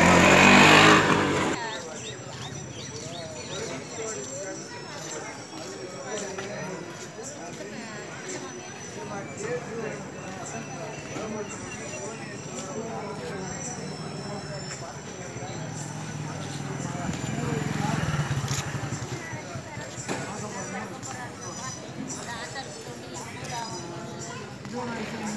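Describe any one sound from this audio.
Many people chatter in the background outdoors.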